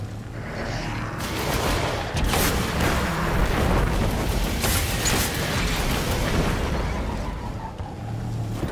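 A hover bike engine roars as it speeds up.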